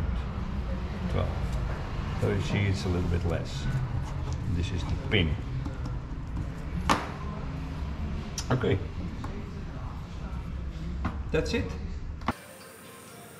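An elderly man talks calmly, close by.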